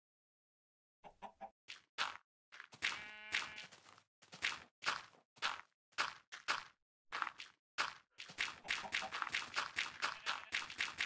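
Blocks of dirt thud softly as they are placed one after another in a video game.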